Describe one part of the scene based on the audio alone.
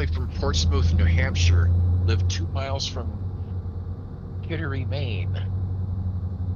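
A middle-aged man talks casually into a microphone.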